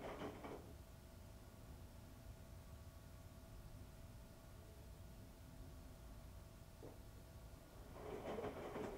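Laundry tumbles and thumps inside a washing machine drum.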